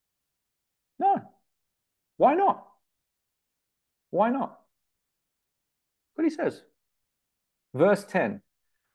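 A man speaks calmly in short phrases, heard close through a computer microphone.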